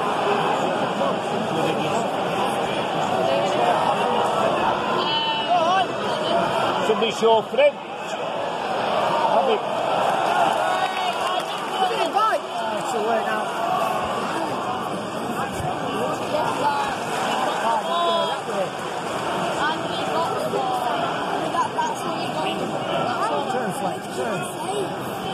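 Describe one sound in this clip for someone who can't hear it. A large stadium crowd chants and roars steadily, heard from within the stands.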